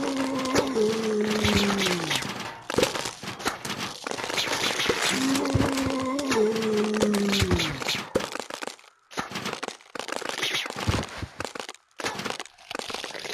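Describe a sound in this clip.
Game sound effects pop and thud rapidly.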